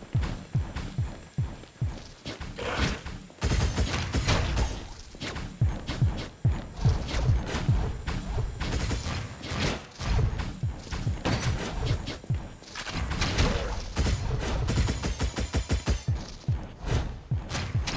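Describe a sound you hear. Laser shots fire in rapid volleys.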